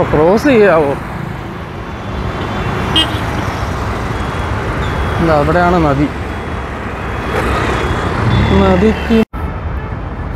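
Motorbike engines hum and rumble past in steady traffic.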